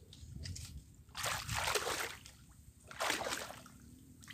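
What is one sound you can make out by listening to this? Water splashes as a man wades.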